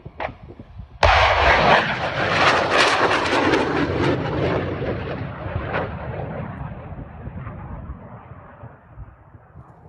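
A rocket launches with a sudden loud roar that slowly fades into the distance.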